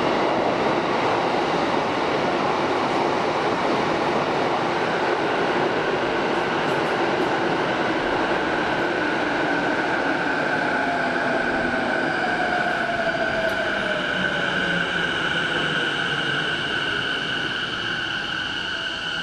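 A train rumbles loudly past on its rails, slowly slowing down.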